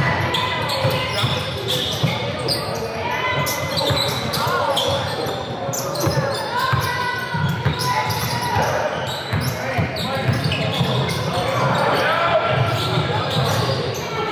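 Young players shout to each other across the court.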